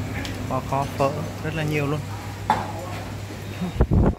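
Men and women chat at tables nearby.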